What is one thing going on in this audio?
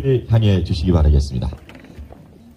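A man speaks loudly through a microphone and loudspeakers.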